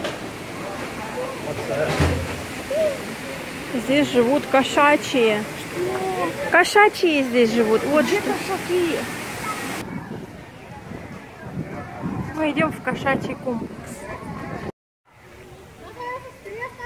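A crowd of adults and children chatter outdoors nearby.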